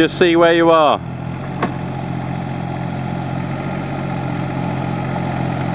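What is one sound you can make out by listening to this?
A digger's hydraulic arm whines as it moves.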